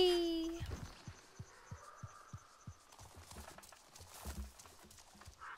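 Footsteps tread steadily over soft forest ground.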